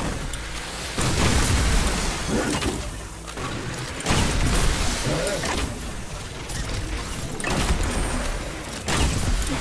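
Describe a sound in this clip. Weapons fire in a video game.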